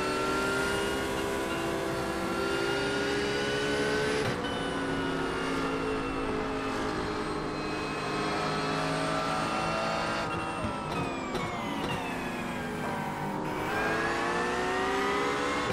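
A racing car engine roars at high revs, its pitch climbing and dropping with each gear change.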